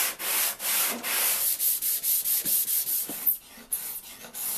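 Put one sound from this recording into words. A sanding block rubs back and forth on wood in quick, rhythmic strokes.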